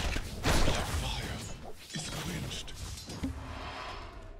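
Fantasy game combat sounds clash and burst in a busy fight.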